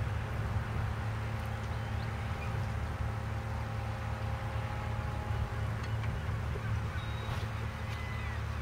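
Wind blows hard into the microphone outdoors.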